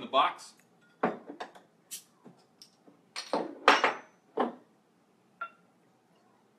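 Glass bottles clink together.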